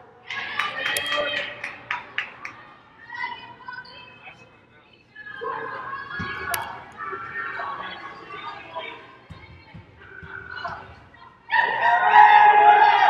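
A crowd of spectators chatters and calls out in a large echoing gym.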